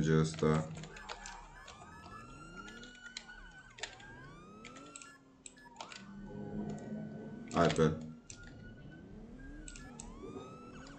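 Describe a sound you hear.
A police siren wails with rising and falling pitch.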